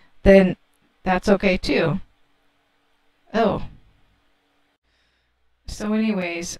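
A young woman speaks with animation into a close microphone, in short bursts with pauses.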